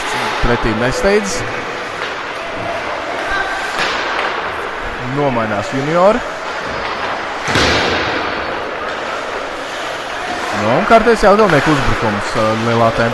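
Ice skates scrape and hiss across ice in a large echoing arena.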